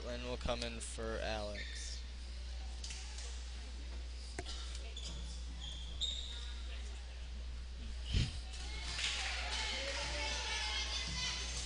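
Young girls shout and call out to each other in an echoing gym.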